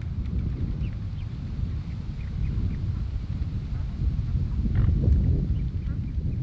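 Swans dabble and splash softly in shallow water.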